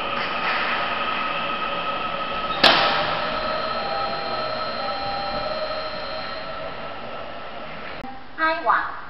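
A train rolls away along the tracks with a high squeal from its wheels.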